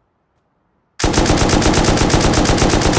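A machine gun fires a rapid, loud burst.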